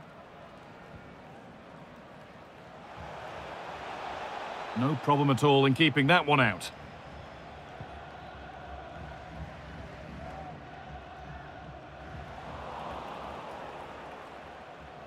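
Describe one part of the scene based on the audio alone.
A stadium crowd roars steadily in the distance.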